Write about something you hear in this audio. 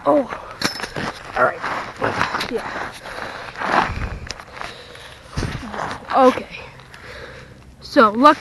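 Boots crunch on dry, gravelly dirt.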